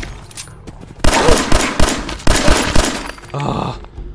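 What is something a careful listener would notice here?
A pistol fires several shots.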